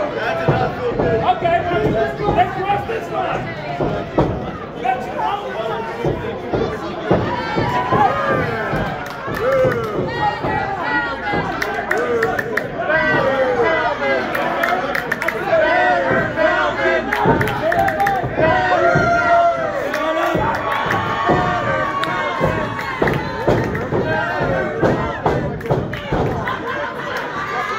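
A crowd of men and women cheers and chants loudly.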